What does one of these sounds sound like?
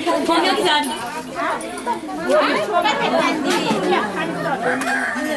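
Several women talk at once nearby.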